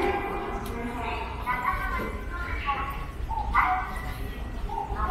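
An escalator hums steadily in a large echoing space.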